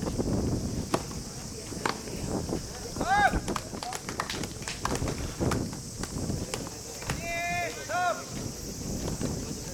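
A tennis ball bounces on a court with sharp taps.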